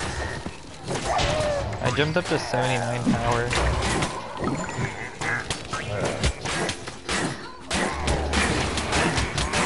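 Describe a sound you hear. Magic blasts zap and crackle in a fight.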